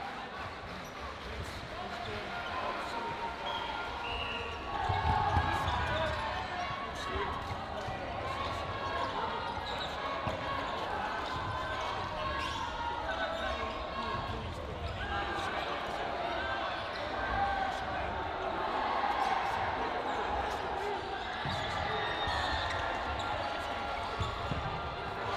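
Men and women talk over one another in a large echoing hall.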